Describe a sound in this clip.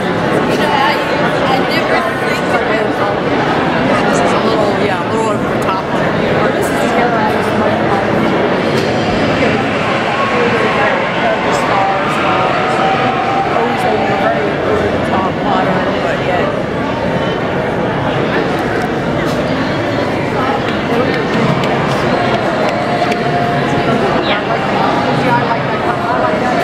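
A large crowd of men and women chatters loudly in a big echoing hall.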